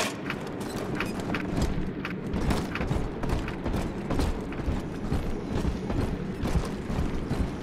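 Footsteps thud steadily on hard stairs and floor.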